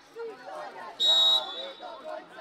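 A referee's whistle blows a short, shrill blast.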